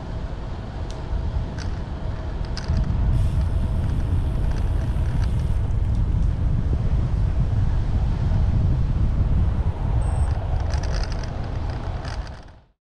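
Wind buffets the microphone steadily.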